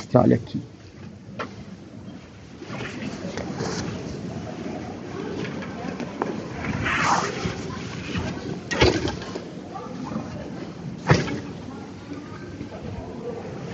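Fabric rustles against a microphone.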